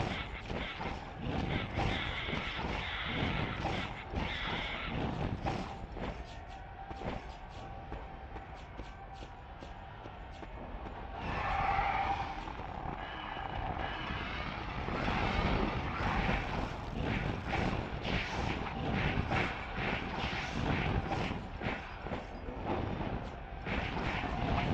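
Fiery blasts whoosh and crackle.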